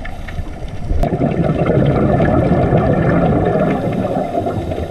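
Scuba divers breathe out, with bubbles rumbling and gurgling underwater.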